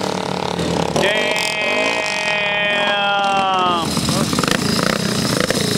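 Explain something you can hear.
A motorcycle engine revs up sharply nearby.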